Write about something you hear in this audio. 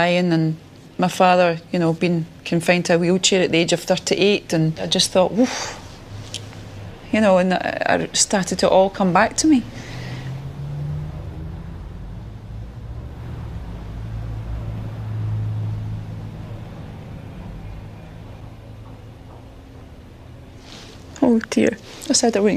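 A woman speaks calmly and emotionally, close by.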